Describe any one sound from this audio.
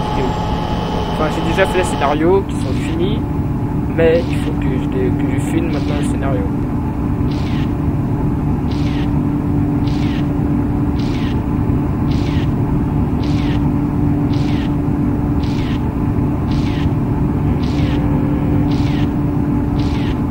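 A train's electric motor hums steadily.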